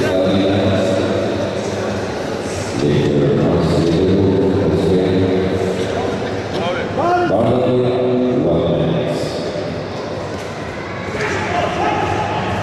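Men shout loud encouragement in a large echoing hall.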